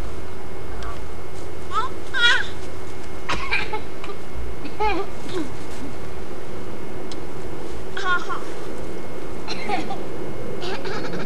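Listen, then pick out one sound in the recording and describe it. Young children chatter and call out in high voices nearby.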